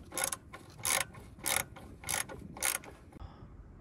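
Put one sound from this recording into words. A ratchet wrench clicks in short, loud bursts.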